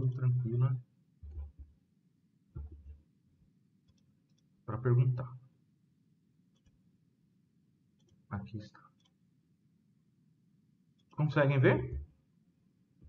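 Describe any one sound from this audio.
A man speaks calmly in short bursts over an online call.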